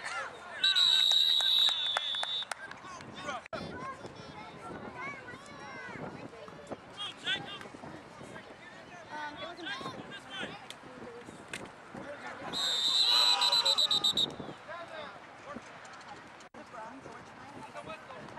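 Voices of boys and adult men shout and call across an open field.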